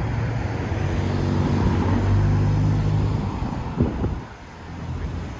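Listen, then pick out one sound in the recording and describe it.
A car engine hums as a car drives past close by.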